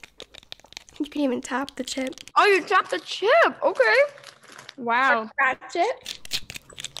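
A young woman talks softly and closely into a microphone.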